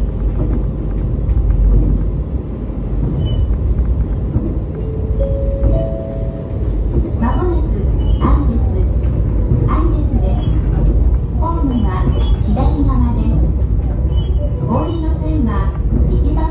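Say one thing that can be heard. A train rumbles steadily along the rails from inside the cab.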